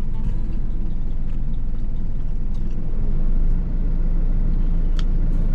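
A steady low engine rumble fills a vehicle.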